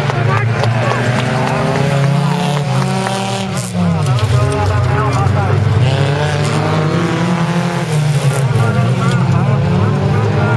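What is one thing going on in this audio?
Rally car engines roar and rev loudly nearby, outdoors.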